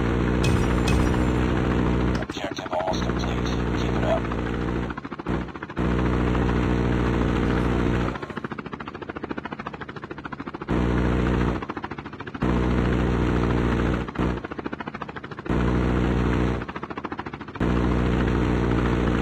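A helicopter's rotor drones steadily overhead.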